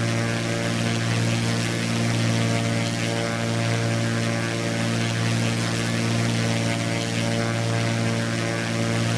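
A small propeller plane's engine drones steadily with a low hum.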